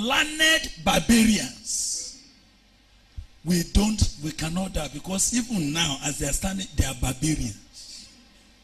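A man preaches forcefully into a microphone, his voice loud and echoing.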